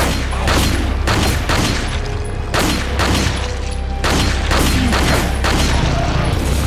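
A handgun fires repeated loud shots.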